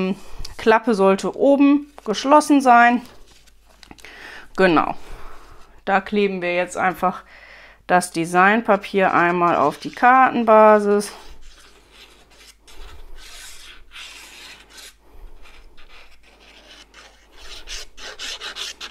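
Paper rustles and slides as it is handled.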